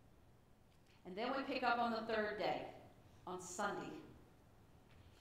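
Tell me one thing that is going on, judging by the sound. A middle-aged woman speaks calmly into a microphone in a softly echoing room.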